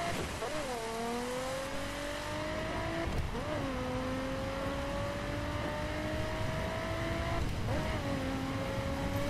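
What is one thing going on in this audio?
A car engine revs hard, its pitch climbing through each gear and dropping sharply at each gear change.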